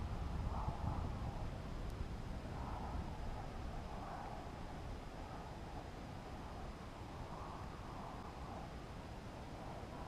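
Wind buffets and rumbles low and steadily.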